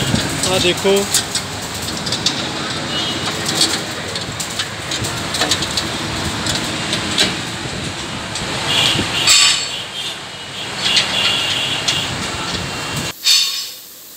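A tractor engine runs nearby.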